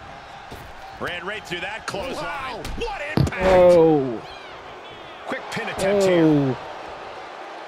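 A wrestler grunts and shouts while fighting.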